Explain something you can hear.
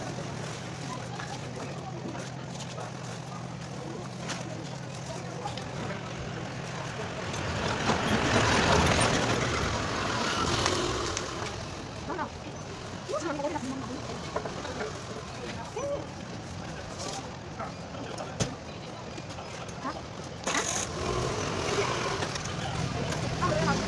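A trowel scrapes across wet cement.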